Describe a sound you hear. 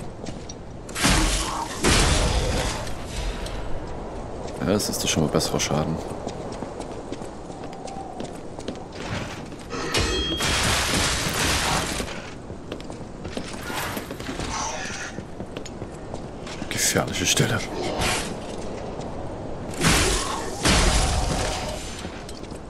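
Heavy weapon blows strike and clang against enemies.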